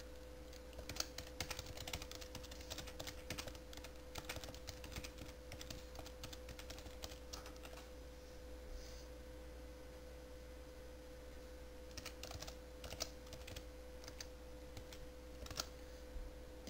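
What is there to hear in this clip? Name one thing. Keys on a keyboard click as someone types.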